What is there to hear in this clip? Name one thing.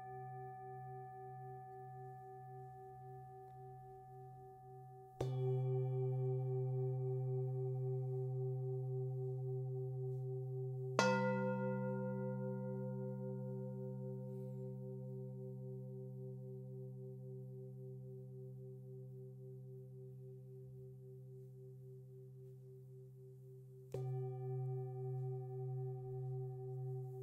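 Metal singing bowls ring with a long, wavering hum.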